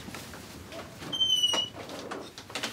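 A window hinge squeaks as a window swings open.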